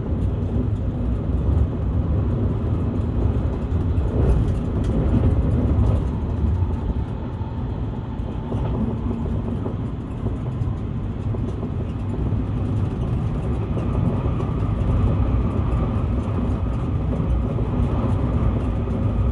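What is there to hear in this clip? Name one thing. A car rumbles low and steadily as it drives along.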